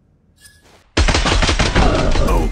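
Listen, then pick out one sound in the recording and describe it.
A gun fires a rapid, loud burst of shots.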